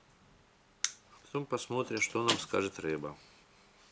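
Metal pliers clink as they are set down on a hard surface.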